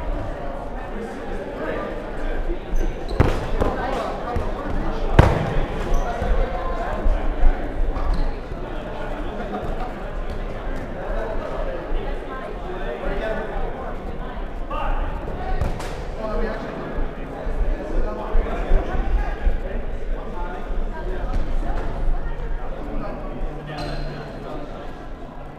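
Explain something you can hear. Young players shout and call out to each other across the hall.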